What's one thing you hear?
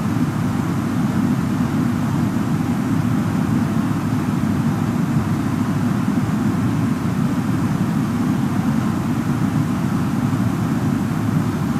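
A steady, low roar of jet engines and rushing air fills a cockpit in flight.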